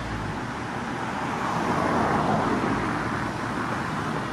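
A car drives past close by on the street.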